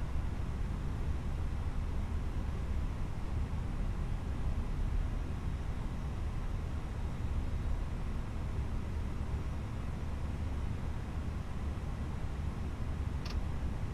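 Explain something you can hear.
Jet engines rumble steadily as an airliner taxis.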